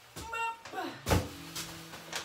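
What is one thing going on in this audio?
A bag thumps down onto a counter.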